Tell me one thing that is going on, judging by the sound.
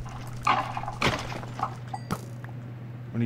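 A sword strikes a creature with sharp hits.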